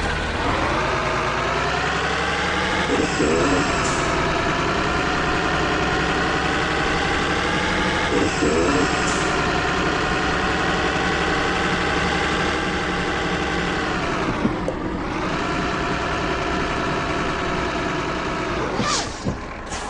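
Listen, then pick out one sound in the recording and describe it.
A truck engine drones steadily, rising in pitch as it speeds up, with brief dips between gears.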